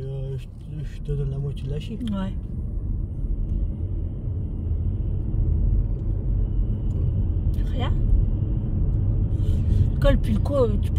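A car engine hums steadily with road rumble.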